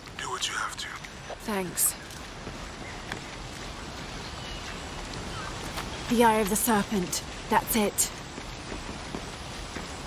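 Footsteps tread on stone and earth.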